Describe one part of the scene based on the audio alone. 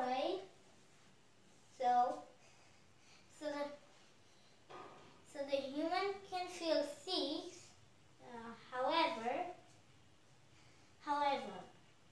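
A young boy speaks nearby in short bursts with pauses, as if explaining.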